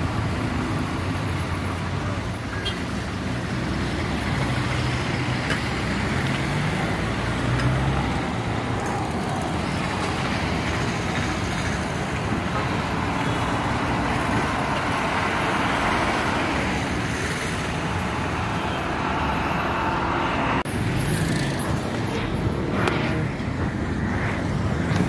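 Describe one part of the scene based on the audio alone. Traffic passes by on a busy street outdoors.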